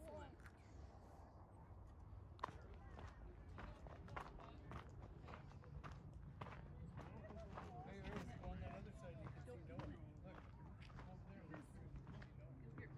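Footsteps crunch on sandy gravel at a steady walking pace.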